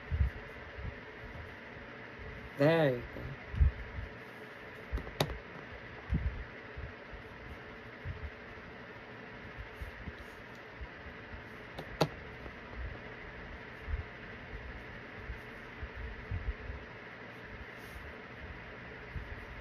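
A makeup brush brushes softly against skin.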